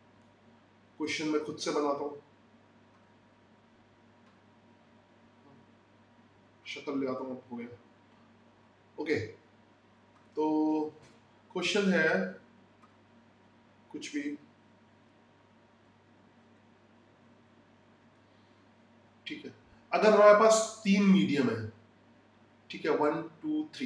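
A man speaks calmly in short phrases into a microphone, with pauses between them.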